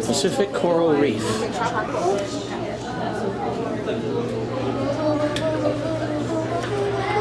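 A crowd of people chatter nearby in an echoing hall.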